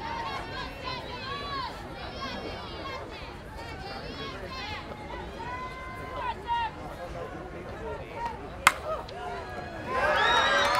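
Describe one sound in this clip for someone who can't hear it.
Young women chant and shout from around an outdoor field.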